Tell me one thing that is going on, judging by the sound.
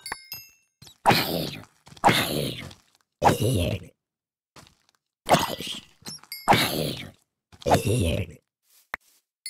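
A creature groans.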